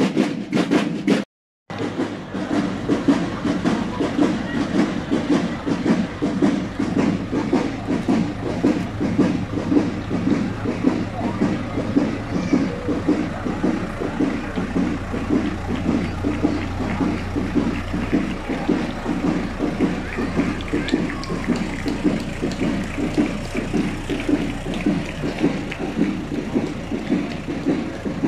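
A crowd murmurs along the street outdoors.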